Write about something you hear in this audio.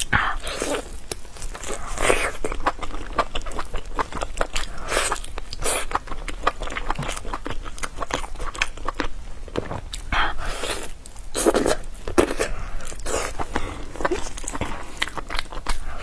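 A young woman chews food loudly and wetly, close to a microphone.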